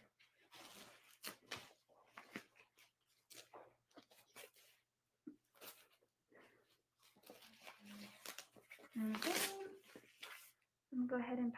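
A blood pressure cuff rustles as it is wrapped around an arm.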